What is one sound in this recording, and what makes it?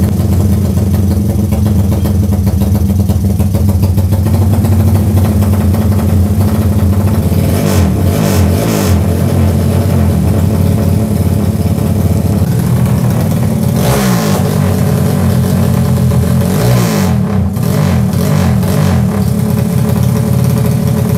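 A motorcycle engine idles loudly and roughly nearby.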